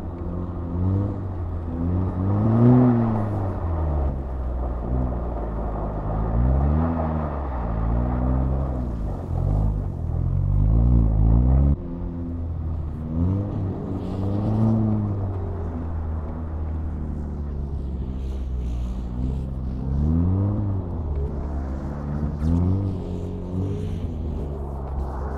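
Tyres hiss and crunch over snow.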